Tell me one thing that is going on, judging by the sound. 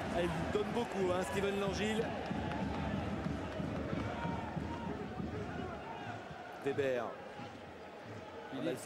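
A large stadium crowd chants and roars.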